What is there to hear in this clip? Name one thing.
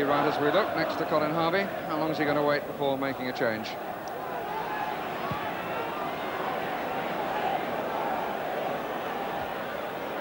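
A large stadium crowd murmurs and roars outdoors.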